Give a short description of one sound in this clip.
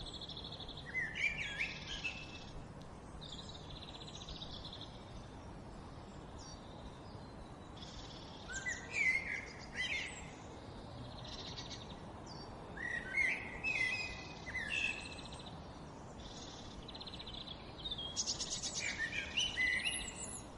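A young jackdaw begs with rapid, raspy buzzing calls.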